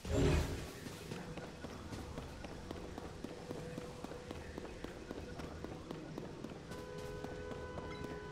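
Footsteps crunch over dry ground.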